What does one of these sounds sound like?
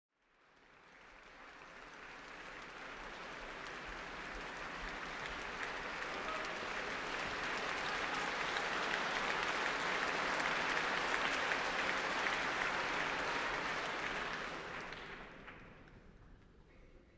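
An audience applauds in a large echoing hall, swelling and then fading.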